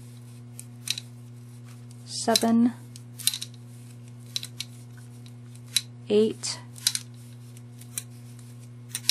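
Twine rubs and scrapes softly as it is wound around a glass jar.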